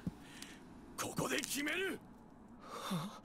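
A man answers in a determined, forceful voice.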